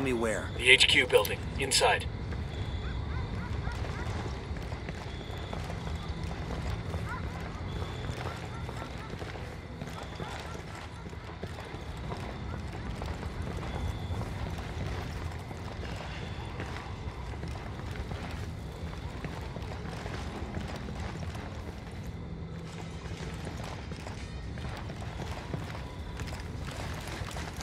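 Footsteps tread slowly on hard ground.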